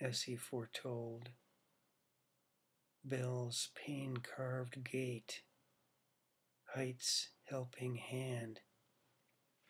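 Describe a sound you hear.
A middle-aged man reads aloud slowly and calmly, close to a microphone, with pauses between phrases.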